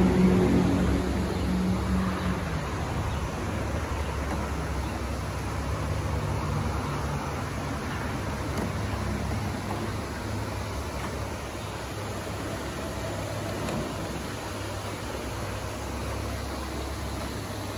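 Water rushes steadily over a low weir nearby.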